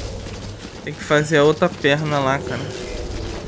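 A man speaks briefly with animation into a microphone.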